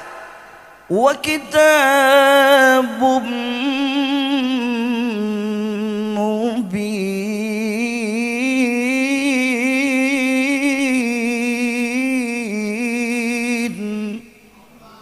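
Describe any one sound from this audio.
A man sings a long, wavering chant through a microphone.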